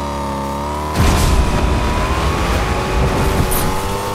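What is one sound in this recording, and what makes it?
A car's boost roars with a rushing blast.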